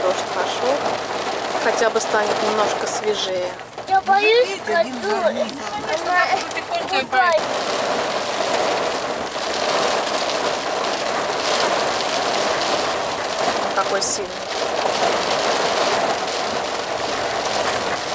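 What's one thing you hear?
Heavy rain drums steadily on a car's roof and windscreen.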